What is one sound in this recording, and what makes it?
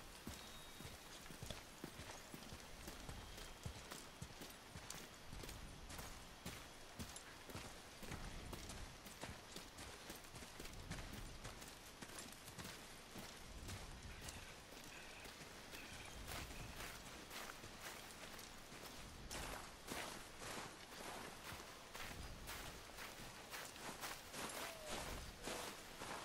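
Footsteps crunch on snowy, gravelly ground.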